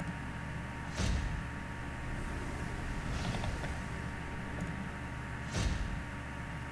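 A game interface chimes briefly with a coin sound.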